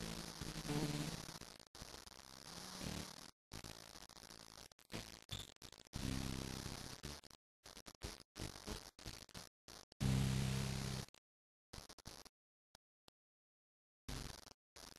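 An electric guitar plays loud, ringing notes in short bursts.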